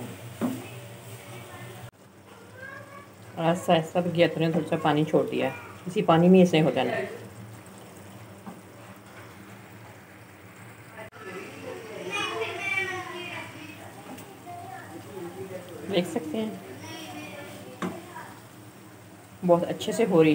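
A wooden spoon stirs vegetables in a metal pot.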